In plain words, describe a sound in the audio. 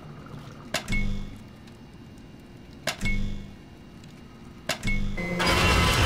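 A button clunks as it is pressed, three times.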